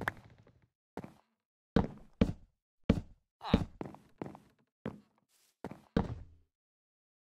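Wooden blocks are placed with short thuds.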